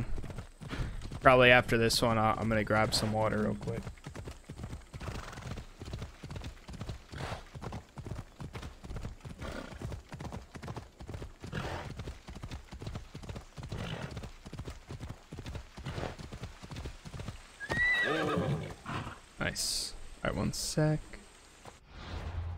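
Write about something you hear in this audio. Horse hooves gallop steadily on a dirt path.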